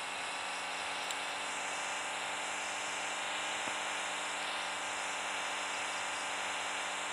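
A jeep engine hums steadily as the jeep drives over rough ground.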